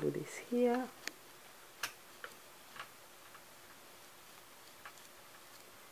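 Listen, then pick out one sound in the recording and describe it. A strip of paper rustles and taps softly as it is pressed into place.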